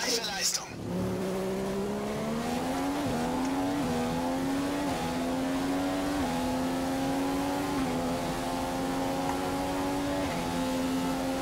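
A racing car engine climbs in pitch through quick gear changes.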